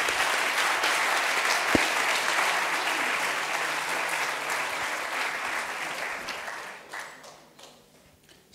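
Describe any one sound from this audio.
An audience applauds, then the applause fades.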